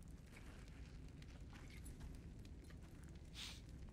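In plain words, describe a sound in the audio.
A man drinks from a bottle and swallows.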